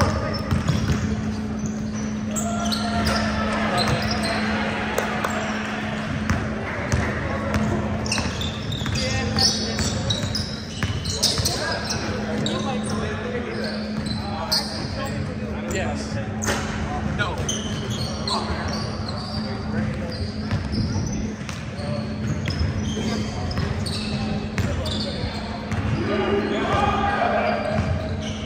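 Young men shout and call out to each other across the gym.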